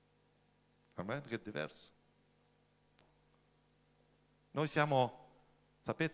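A middle-aged man speaks into a microphone, reading out in short bursts.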